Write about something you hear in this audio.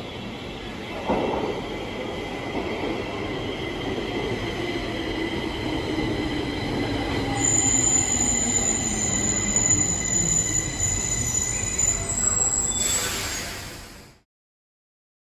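A metro train rumbles into an echoing underground station, growing louder as it approaches.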